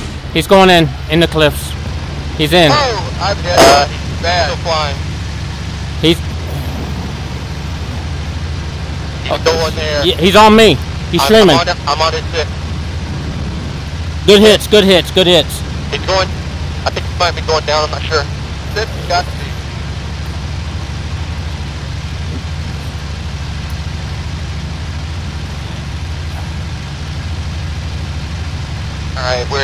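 An aircraft engine drones steadily and close by.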